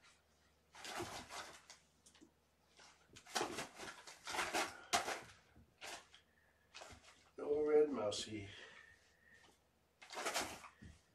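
Toys and objects rustle and thump as they are handled.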